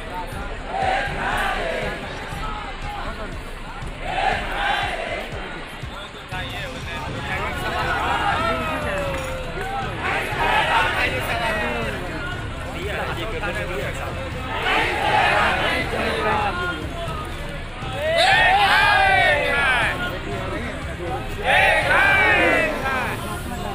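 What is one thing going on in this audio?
A crowd of men chants slogans loudly outdoors.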